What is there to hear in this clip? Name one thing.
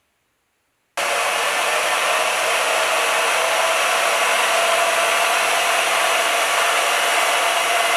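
A band saw runs with a loud, steady whir.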